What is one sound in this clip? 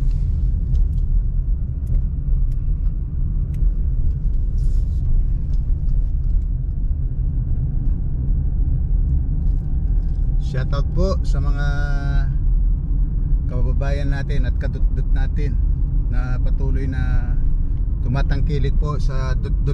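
A car rumbles steadily as it drives along a road.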